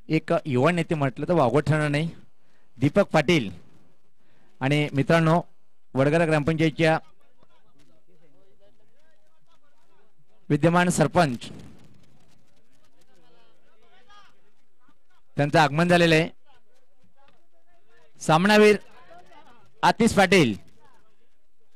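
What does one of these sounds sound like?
A man announces loudly through a microphone and loudspeakers in short bursts.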